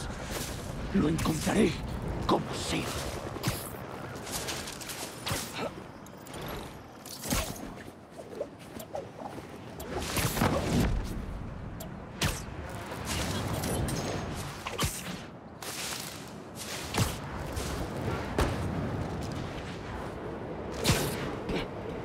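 Webs shoot out with sharp thwipping snaps.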